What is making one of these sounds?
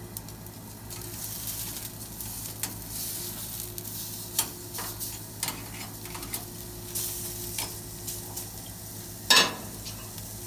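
Metal tongs clink as meat is turned over.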